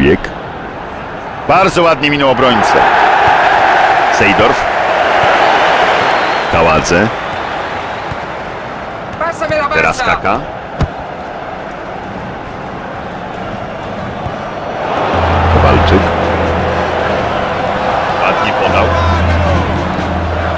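A large stadium crowd roars steadily, swelling louder now and then.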